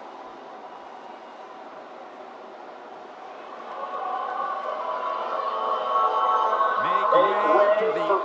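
A large crowd cheers and roars in an echoing arena, growing louder.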